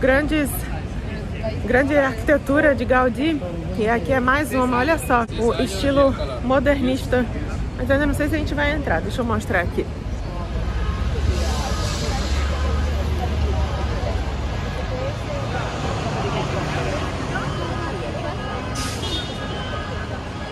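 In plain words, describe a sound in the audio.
Street bustle and traffic hum in the background.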